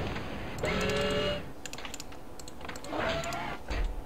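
Rapid gunfire crackles in a battle.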